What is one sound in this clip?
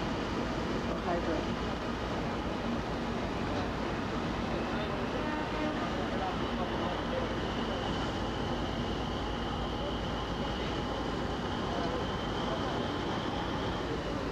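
A hydrofoil's engine drones nearby.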